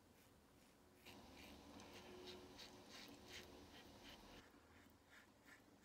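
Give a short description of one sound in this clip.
A razor scrapes across stubble in short strokes.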